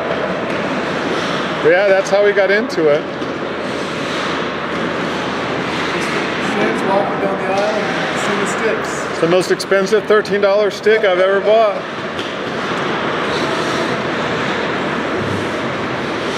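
Hockey sticks clack against pucks and the ice.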